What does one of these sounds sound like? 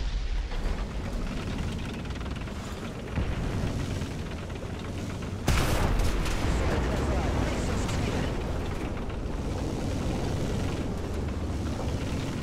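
Tank tracks clatter over rubble.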